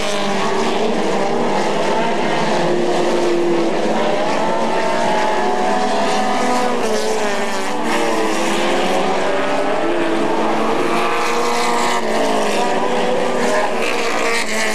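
Race car engines roar loudly, rising and falling in pitch as the cars speed around a track.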